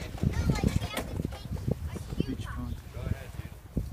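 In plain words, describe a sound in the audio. A cart rolls and rattles over paving stones.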